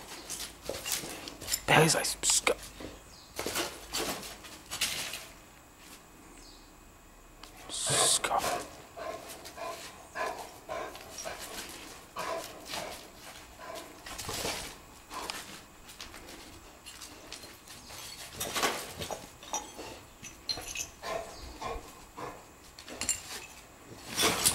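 A dog's paws scrape and crunch on dry, gritty ground.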